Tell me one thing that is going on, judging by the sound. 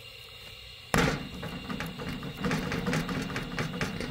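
Dough is set down with a soft slap on a metal tray.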